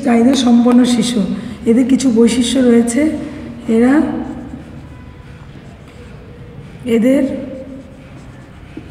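A woman speaks calmly, as if teaching.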